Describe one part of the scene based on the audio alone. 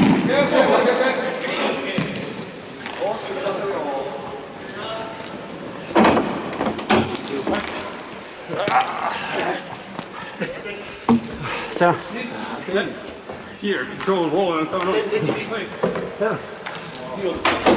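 Players shout and call out across a large echoing rink.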